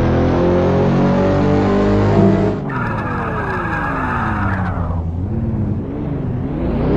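A car engine roars at high revs, then winds down and idles.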